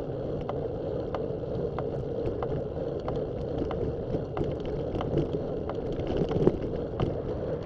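Wind rumbles steadily against the microphone outdoors.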